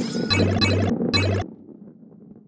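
A bright chime rings out as a coin is collected.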